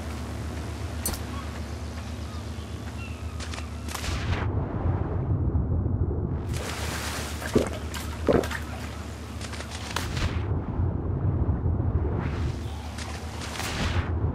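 Waves wash gently onto a sandy shore.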